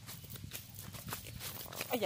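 A fish flaps and thrashes against rocks.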